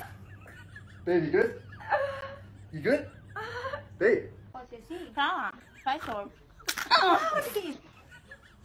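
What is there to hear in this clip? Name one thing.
A young woman cries out in alarm.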